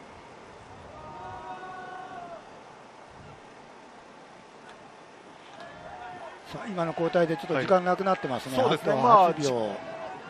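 A crowd murmurs in the stands of an open-air stadium.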